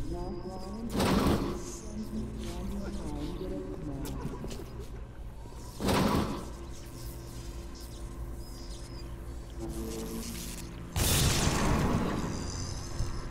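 Electricity crackles and zaps in short, loud bursts.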